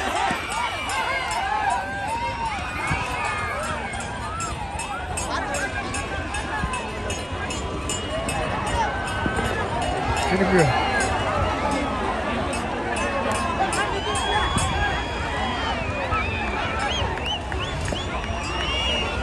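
A large outdoor crowd of men and women shouts and cheers loudly.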